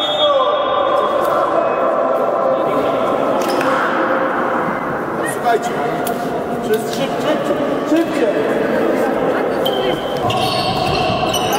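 Young players and spectators chatter in a large echoing hall.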